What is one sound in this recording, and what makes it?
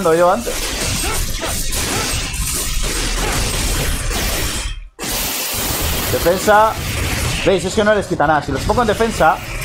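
Blades slash and clang in a fierce fight.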